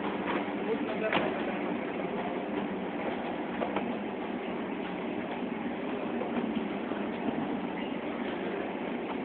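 A machine hums and rattles steadily nearby.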